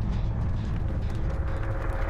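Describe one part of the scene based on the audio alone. A fire crackles and burns in a metal barrel.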